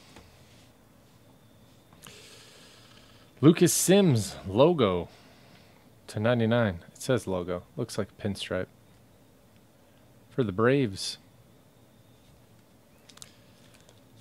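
Trading cards rustle and slide between fingers.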